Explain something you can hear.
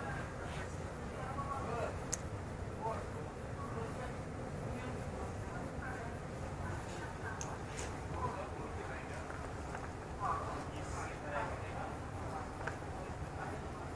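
A standing train hums steadily at a platform.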